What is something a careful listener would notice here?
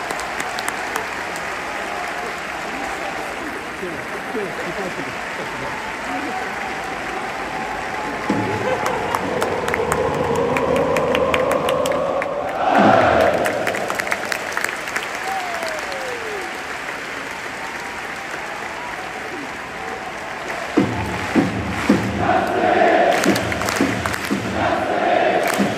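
A large stadium crowd chants and sings loudly in unison.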